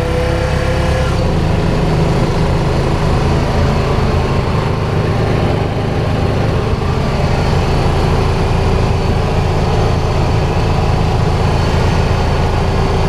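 A small utility vehicle's engine hums steadily as it drives along.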